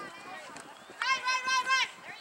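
A young woman shouts loudly from across a field.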